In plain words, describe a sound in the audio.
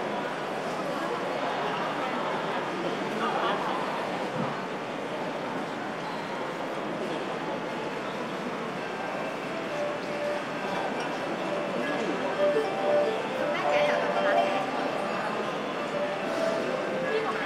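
A bowed two-string fiddle plays a melody.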